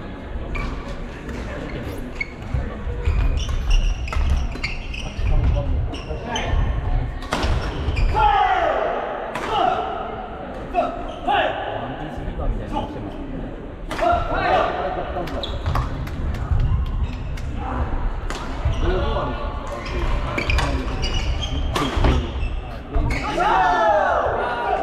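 Rackets hit shuttlecocks with sharp pops in a large echoing hall.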